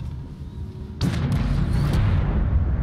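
A deep rumble swells loudly.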